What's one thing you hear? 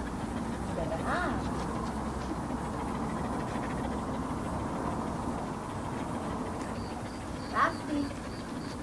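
A young woman calls out to a dog.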